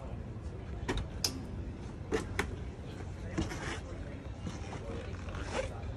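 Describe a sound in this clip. Footsteps thud on a metal step.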